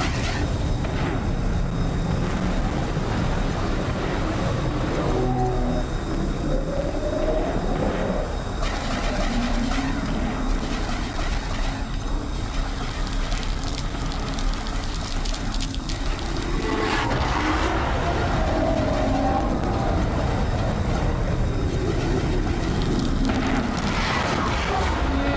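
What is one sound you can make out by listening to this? Laser cannons fire in rapid zapping bursts.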